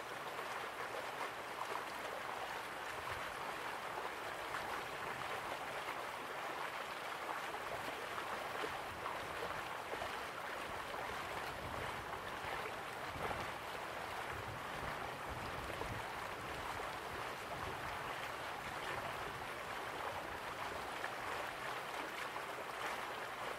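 A waterfall splashes steadily into a pool.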